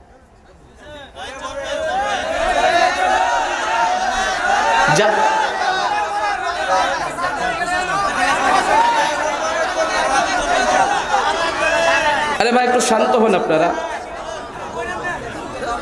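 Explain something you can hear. A man preaches with animation into a microphone, heard through loudspeakers with echo.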